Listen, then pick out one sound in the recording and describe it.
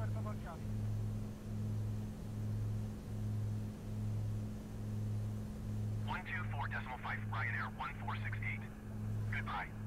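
The engine of a single-engine piston light aircraft drones in cruise, heard from inside the cockpit.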